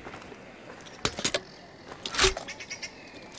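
A rifle's metal parts click and clack as it is handled.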